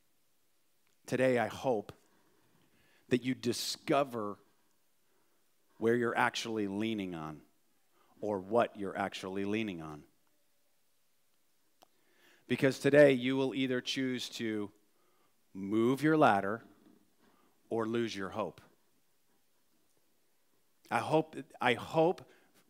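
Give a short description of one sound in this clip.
A middle-aged man speaks calmly through a microphone, pausing often between phrases.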